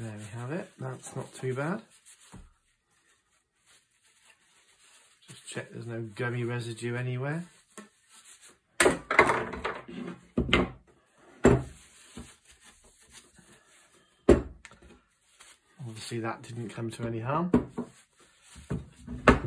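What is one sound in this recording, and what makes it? A cloth rubs over wood.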